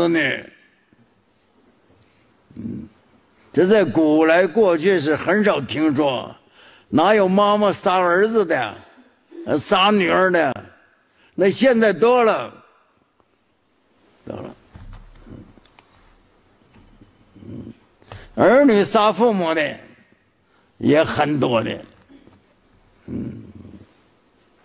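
An elderly man speaks calmly into a microphone, in bursts with pauses.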